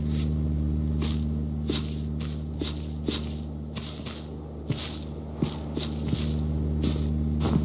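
Footsteps swish through grass at a steady walking pace.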